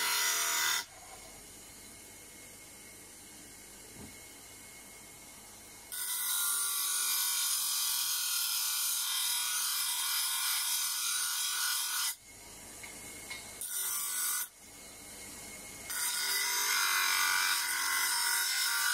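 An electric sander grinds metal with a harsh, hissing rasp in repeated bursts.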